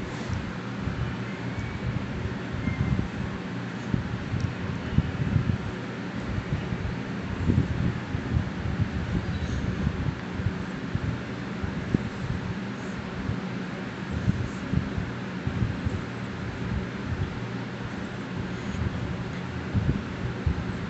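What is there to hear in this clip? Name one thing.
Fabric rustles and brushes close by.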